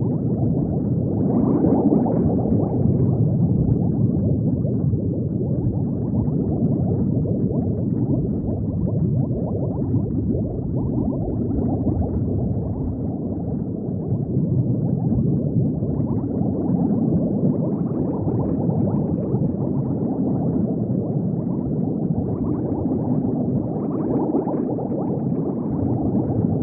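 Bubbles gurgle and rumble steadily underwater.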